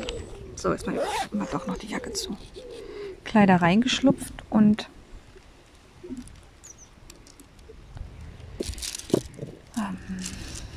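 A pen tool clicks softly as it presses small plastic beads into place.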